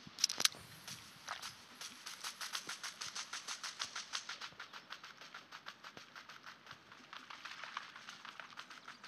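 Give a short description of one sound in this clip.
Quick footsteps thud steadily on grass.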